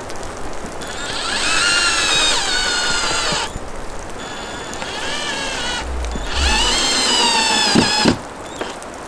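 A cordless drill whirs as it drives screws into a metal roof sheet.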